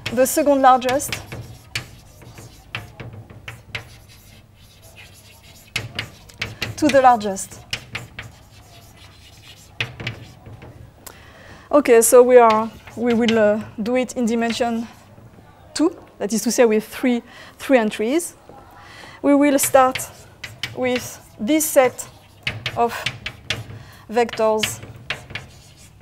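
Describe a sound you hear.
A woman speaks calmly, lecturing.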